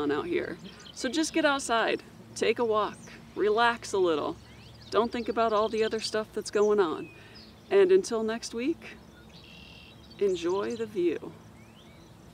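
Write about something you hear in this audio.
A woman speaks calmly and clearly into a microphone, close by, outdoors.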